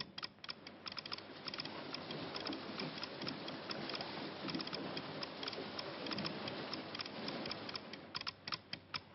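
Rough sea waves churn and splash.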